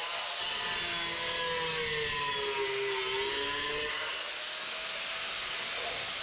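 An angle grinder whines loudly and steadily.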